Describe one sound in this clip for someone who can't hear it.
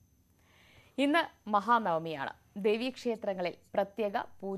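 A young woman speaks brightly into a microphone.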